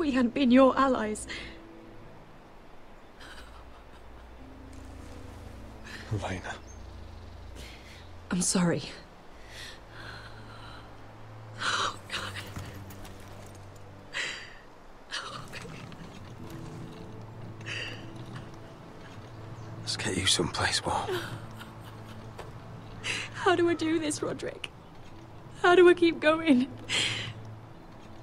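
A young woman speaks in an upset voice, close by.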